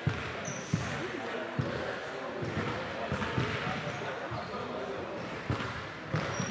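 Young men talk over one another in a huddle in a large echoing gym.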